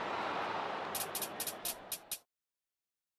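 Fingers tap quickly on a touchscreen.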